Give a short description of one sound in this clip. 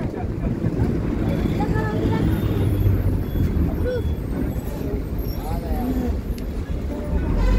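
Men and women chatter nearby.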